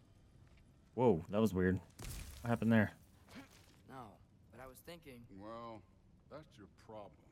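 A young man talks close to a microphone with animation.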